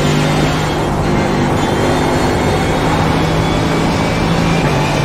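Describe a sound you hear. A racing car engine roars loudly at high revs, its pitch holding steady and slowly rising.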